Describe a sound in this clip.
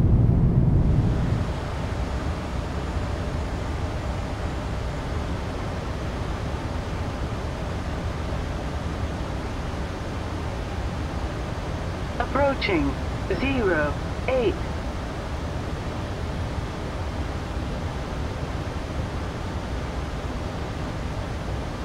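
Jet engines hum more softly and evenly inside an airliner cockpit.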